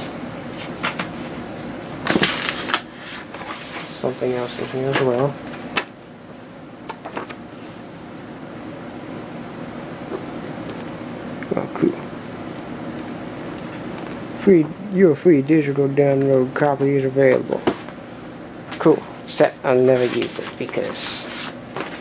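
Paper and cardboard rustle and scrape as items are handled.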